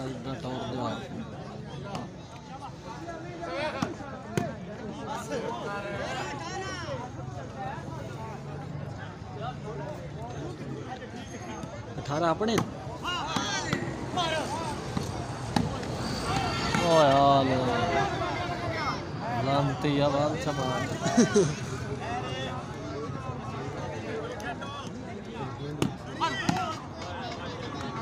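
A large outdoor crowd murmurs and chatters throughout.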